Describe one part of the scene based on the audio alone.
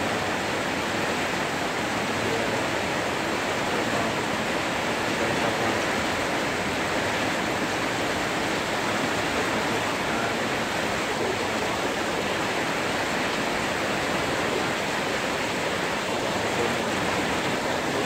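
Heavy rain pours down and drums on metal roofs.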